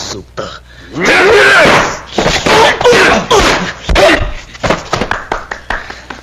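Men shout and yell during a scuffle.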